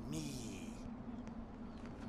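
A man speaks in a rough, low voice.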